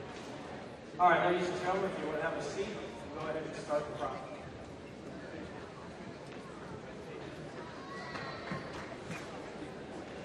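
A man announces through a loudspeaker in a large echoing hall.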